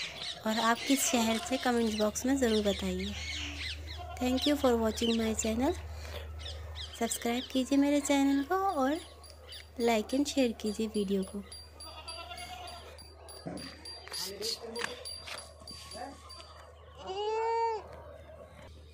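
Young goats bleat loudly and repeatedly close by.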